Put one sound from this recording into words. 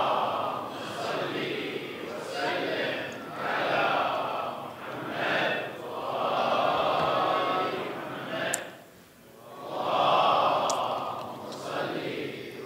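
A man speaks calmly into a microphone, heard through a loudspeaker in an echoing hall.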